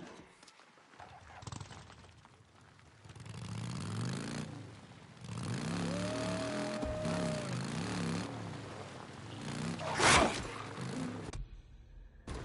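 Tyres crunch over dirt and gravel.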